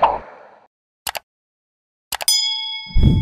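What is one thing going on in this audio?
A computer mouse clicks sharply.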